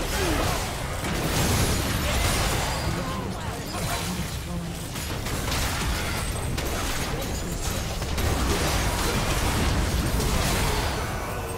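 Spell effects whoosh and blast in a chaotic video game battle.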